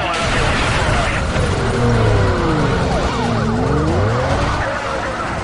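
Police sirens wail up and down close by.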